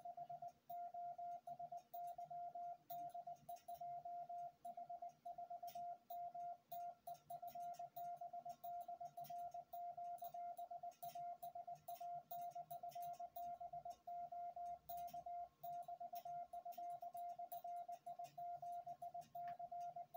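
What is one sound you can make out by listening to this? A steady morse code tone beeps in quick dots and dashes from a radio.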